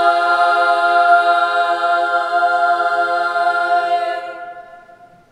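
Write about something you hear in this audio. A women's choir sings a held chord in a large echoing hall.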